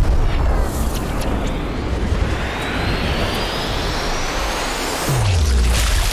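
A bullet whooshes through the air.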